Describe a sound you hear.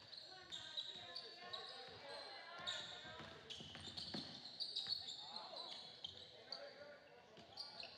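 Basketball shoes squeak sharply on a gym floor.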